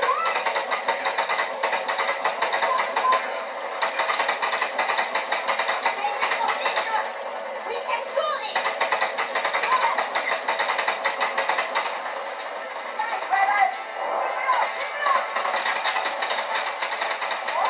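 Rapid gunfire from a video game plays through small laptop speakers.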